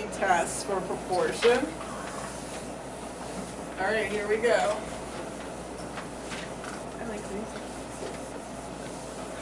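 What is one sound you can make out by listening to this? A cloth rubs and wipes across a chalkboard.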